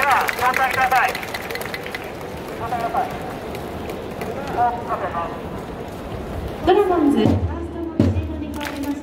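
A large crowd cheers and chants loudly in a big echoing stadium.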